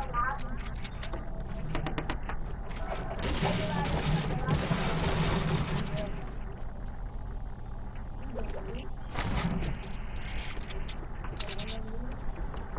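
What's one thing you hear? Wooden walls and ramps clack into place in a game.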